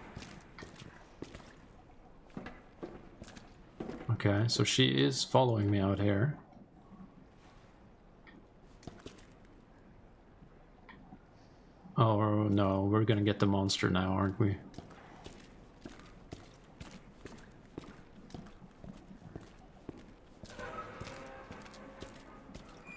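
Footsteps tread slowly over gritty ground.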